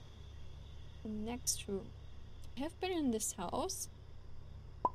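A young woman speaks briefly and casually into a close microphone.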